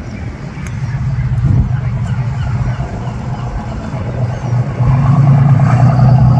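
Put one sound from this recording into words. A boat engine rumbles close by, growing louder.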